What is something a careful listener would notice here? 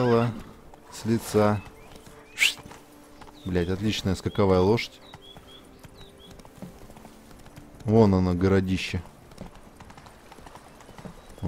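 A horse gallops with hooves thudding on soft ground.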